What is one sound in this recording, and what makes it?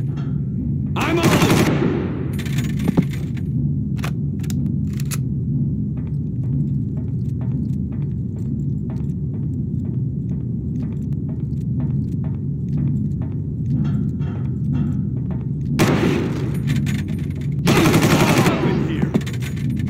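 A rifle fires rapid bursts that echo in a metal duct.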